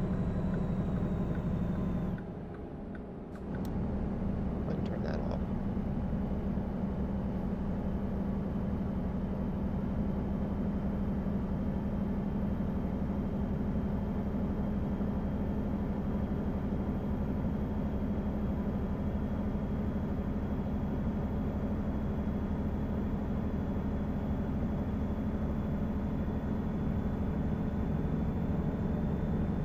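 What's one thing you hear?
Tyres roll on the road surface with a steady hum.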